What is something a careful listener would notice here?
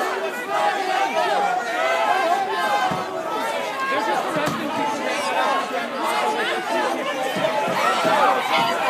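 A crowd of men and women shout and talk all at once, close by, outdoors.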